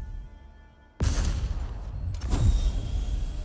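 A heavy metal chest creaks open.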